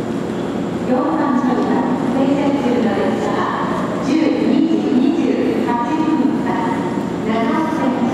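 A crowd of passengers chatters on a platform.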